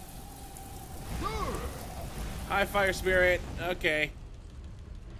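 Flames roar and burst loudly from a fire spell.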